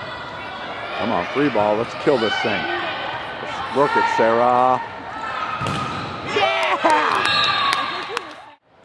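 Young women shout and call out across an echoing hall.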